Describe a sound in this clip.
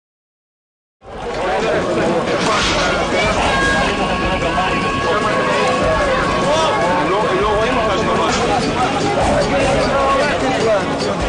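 A crowd of young men shout outdoors.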